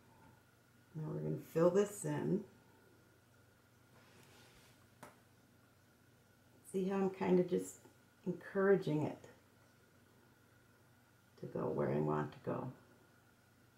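An older woman speaks calmly close by, in short phrases.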